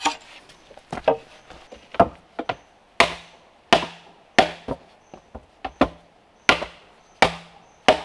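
Bamboo poles knock hollowly against each other.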